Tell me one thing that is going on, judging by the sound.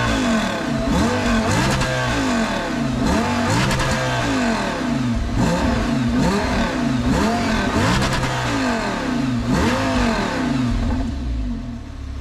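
A sports car engine revs hard again and again, roaring and popping from the exhaust up close.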